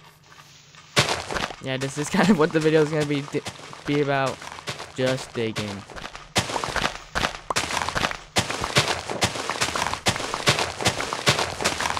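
A shovel digs into dirt with repeated crunching thuds.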